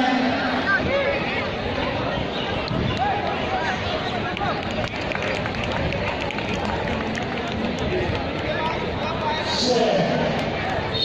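A crowd of young people chatters in the distance outdoors.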